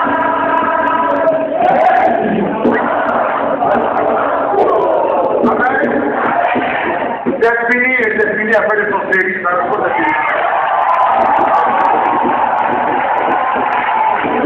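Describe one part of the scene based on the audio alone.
A crowd sings and cheers loudly in an echoing hall.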